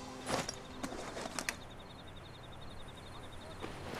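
Grass rustles as a soldier crawls through it.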